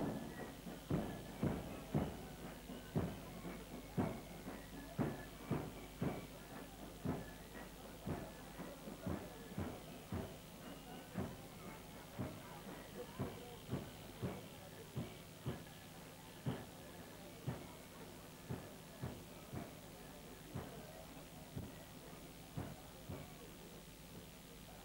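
A bass drum beats a steady march rhythm.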